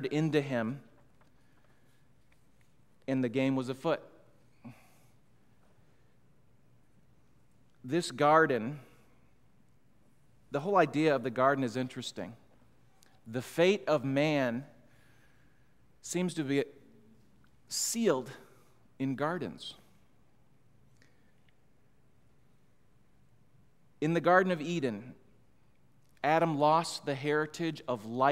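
A middle-aged man speaks calmly into a microphone in bursts, with long pauses between.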